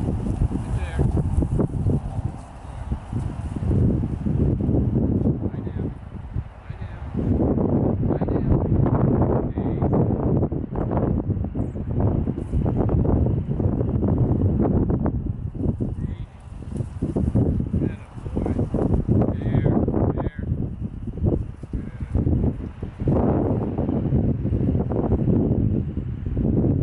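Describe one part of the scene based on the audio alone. Wind buffets the microphone outdoors in an open field.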